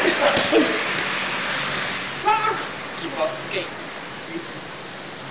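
Young players shout to each other from a distance in a large echoing hall.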